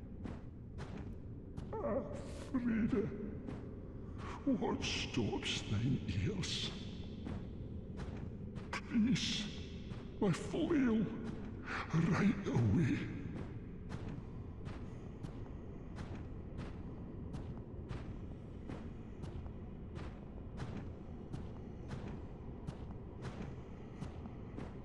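Armoured footsteps clank steadily on a stone floor.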